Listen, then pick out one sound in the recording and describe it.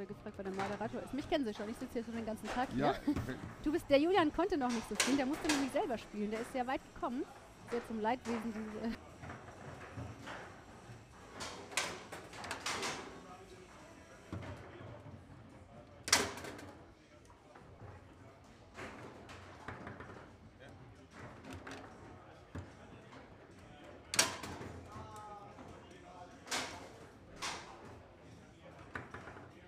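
Foosball rods clatter and spin.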